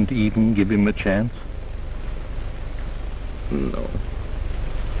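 A man speaks in a strained, pained voice close by.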